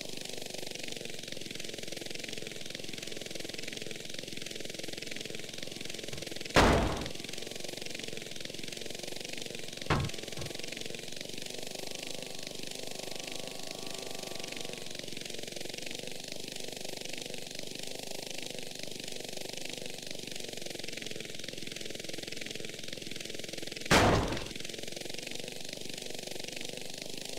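A helicopter's rotor whirs steadily.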